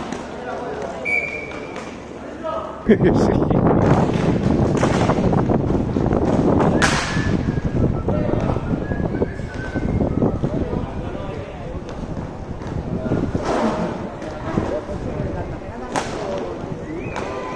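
Inline skate wheels roll and scrape on a hard rink floor.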